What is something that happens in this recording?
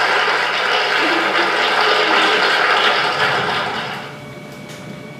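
An audience applauds through a loudspeaker in a room, then the applause fades.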